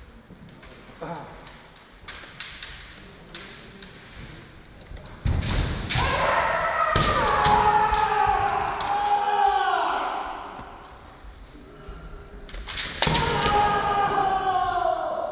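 Bamboo swords clack together sharply.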